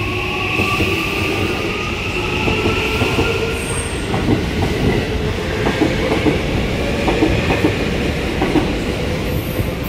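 A train rumbles past at speed.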